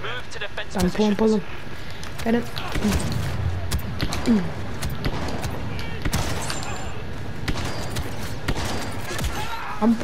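Blaster shots fire in rapid bursts.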